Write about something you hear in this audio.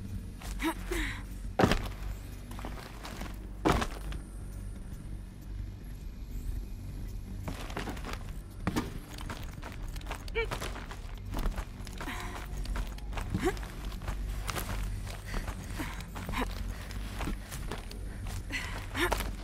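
Hands and feet knock and scrape on metal handholds while climbing.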